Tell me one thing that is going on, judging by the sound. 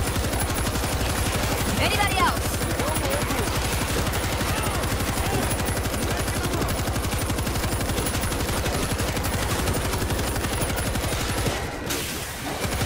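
A heavy machine gun fires in rapid, continuous bursts.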